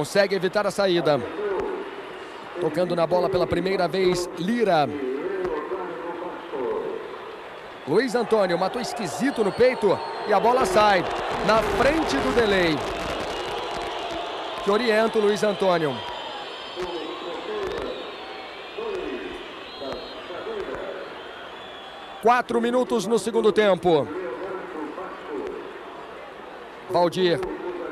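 A large stadium crowd roars and chants in the distance.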